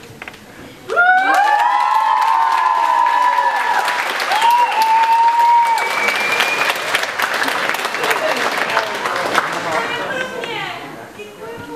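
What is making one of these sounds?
A large audience bursts into loud applause.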